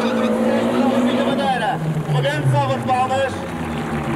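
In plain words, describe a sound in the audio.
Tyres squeal on tarmac as a car spins.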